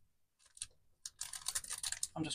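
Card rustles as it is handled.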